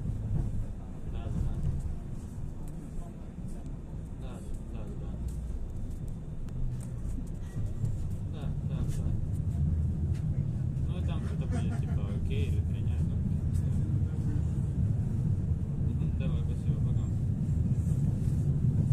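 A tram rumbles steadily along its rails.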